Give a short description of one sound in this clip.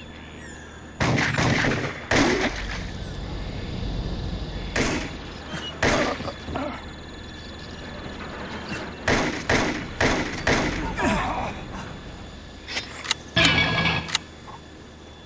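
Pistol shots ring out in bursts.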